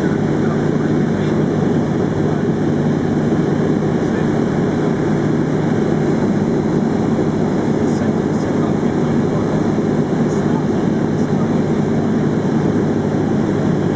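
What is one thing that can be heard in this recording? A small plane's propeller engine drones loudly and steadily from inside the cabin.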